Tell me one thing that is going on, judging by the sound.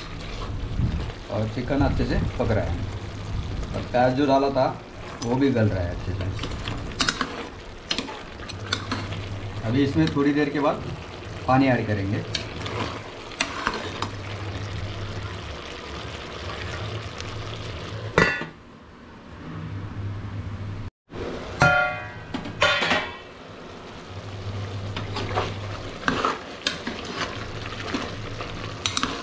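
A metal spoon scrapes and clinks against a metal pot while stirring food.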